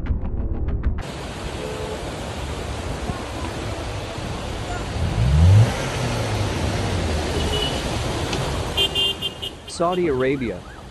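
Water rushes and splashes as a car drives through a flooded street.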